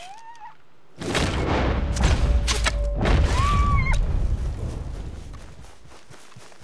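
A bow string snaps as an arrow is loosed.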